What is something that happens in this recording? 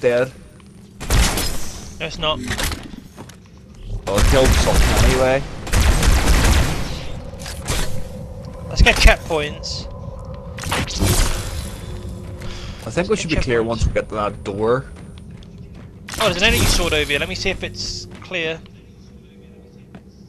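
Energy weapons fire in sharp bursts.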